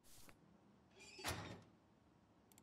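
A metal cabinet door creaks open.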